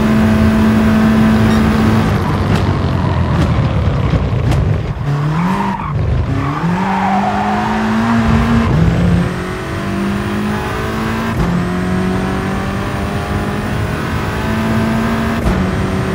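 A race car engine roars, dropping in pitch as it slows for a bend and rising again as it speeds up through the gears.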